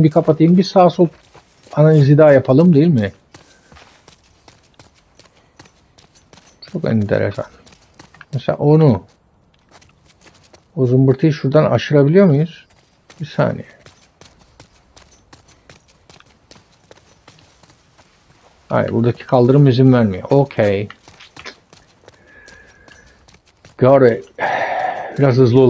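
A man talks with animation into a close microphone, in short bursts with pauses.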